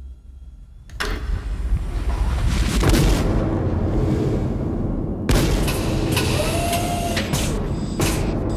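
A heavy industrial press rumbles and clanks.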